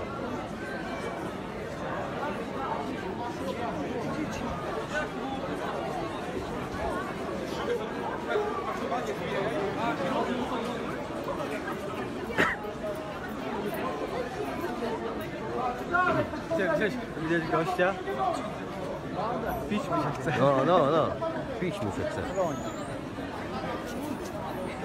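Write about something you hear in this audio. A crowd of people talks and murmurs in a large echoing hall.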